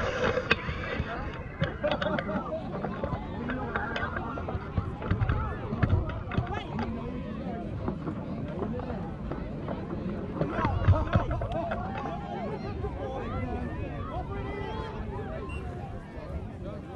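A crowd of adults and children chatter outdoors.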